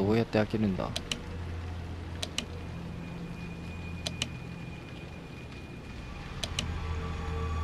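Short electronic menu clicks sound in quick pairs.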